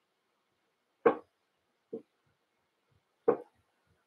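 Small clicks and taps come from hands handling a tool close by.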